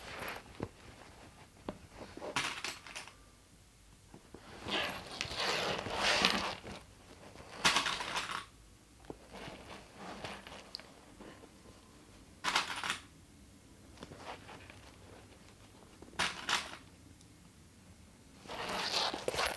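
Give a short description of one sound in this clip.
Plastic clips snap onto fabric with small clicks.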